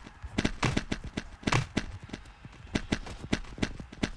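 A sword strikes another player with sharp hits.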